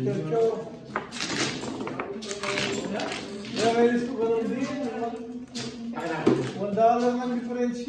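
Tiles rattle and clatter as they are shuffled on a table.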